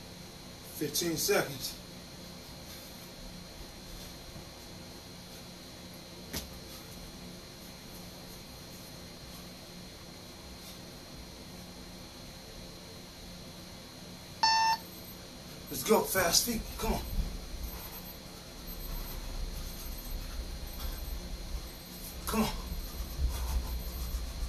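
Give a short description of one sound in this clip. Shoes shuffle and thump on a floor.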